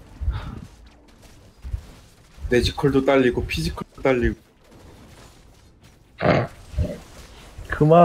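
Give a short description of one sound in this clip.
Weapons clash and spells burst in a fast fight.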